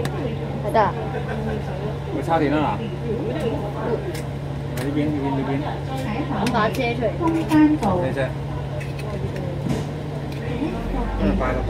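A bus engine idles with a low, steady hum.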